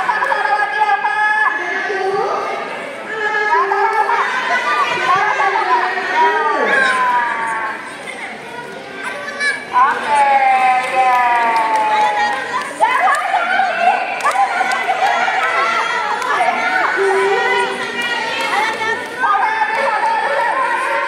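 Young children shout and chatter excitedly nearby in an echoing hall.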